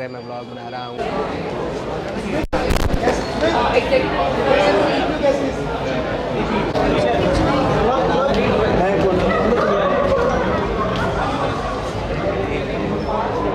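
A crowd chatters in a loud, echoing space.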